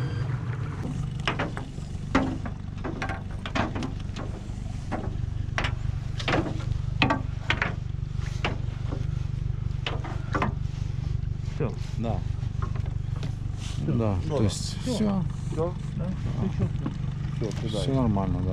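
A net and floats knock and rattle against the side of a metal boat.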